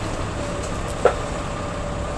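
A tool strikes a tree branch with a sharp knock.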